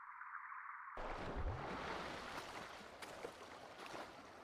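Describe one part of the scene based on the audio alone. Water splashes as a swimmer surfaces and swims.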